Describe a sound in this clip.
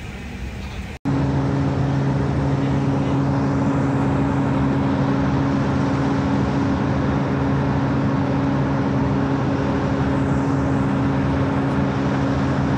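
A jet engine roars steadily, loud and close.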